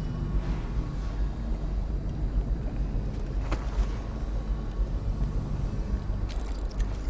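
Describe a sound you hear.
Footsteps thud steadily as someone walks.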